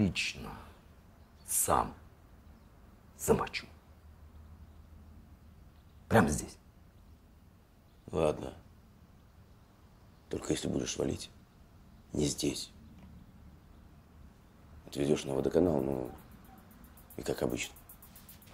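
A man speaks in short, tense phrases close by, with pauses between them.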